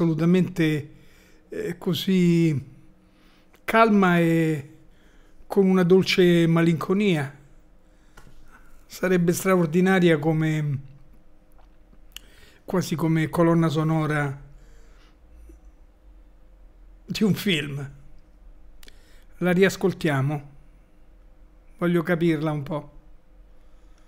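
An elderly man talks calmly and thoughtfully into a close microphone, in short phrases with pauses.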